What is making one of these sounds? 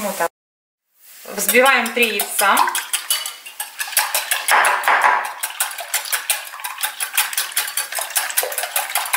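A whisk clinks rapidly against a glass bowl.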